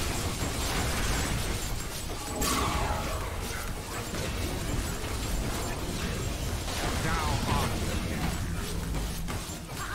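Magic blasts and clashing weapons crackle and burst in a frantic game battle.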